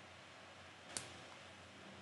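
A short digital click sounds.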